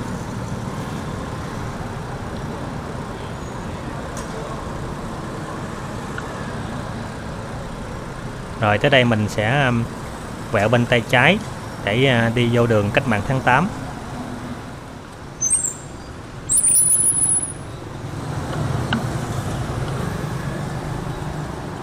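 Motorbikes hum along a street nearby.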